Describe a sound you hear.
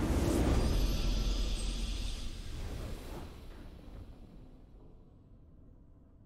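A triumphant game victory fanfare swells loudly and then slowly fades away.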